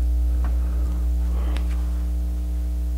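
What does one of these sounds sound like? A middle-aged man speaks briefly into a close microphone.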